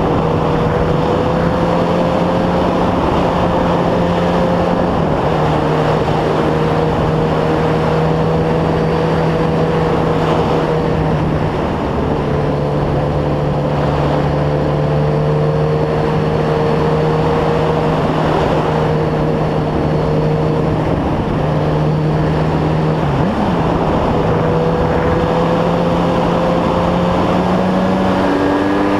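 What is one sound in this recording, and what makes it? A motorcycle engine hums steadily close by, its pitch shifting slightly with gear changes.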